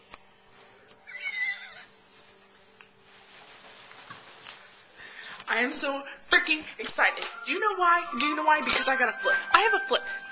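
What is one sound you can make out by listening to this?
A young woman speaks animatedly close by.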